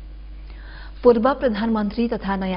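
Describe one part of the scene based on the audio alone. A young woman reads out calmly into a microphone.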